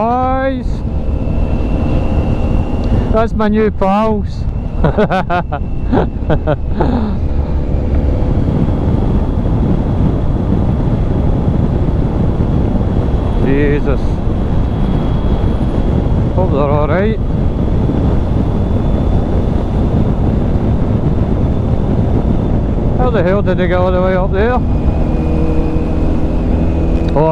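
A motorcycle engine drones steadily and revs up and down between gear changes.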